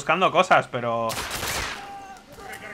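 A pistol fires a single loud shot that echoes.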